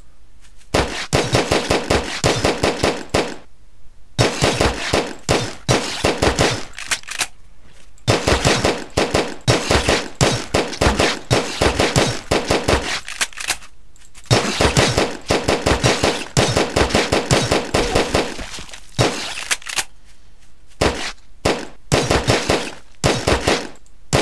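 A gun fires in rapid bursts of shots.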